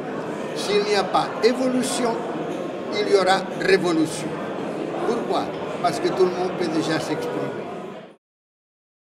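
An older man speaks calmly and steadily into a close microphone.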